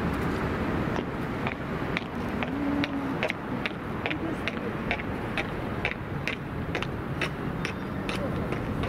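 Footsteps tap steadily on a paved pavement outdoors.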